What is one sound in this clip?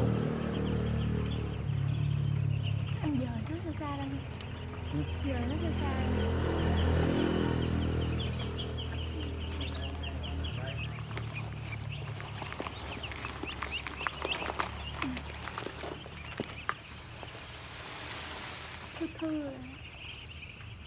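A large flock of ducklings peeps and chirps constantly.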